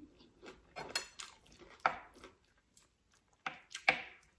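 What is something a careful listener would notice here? A spoon scrapes and clicks against a plate.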